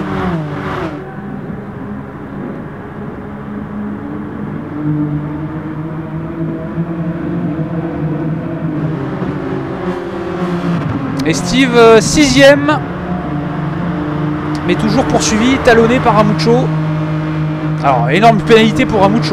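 Racing car engines roar and drone steadily, rising and falling as gears change.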